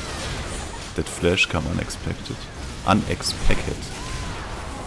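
Magic spells blast and crackle in a video game fight.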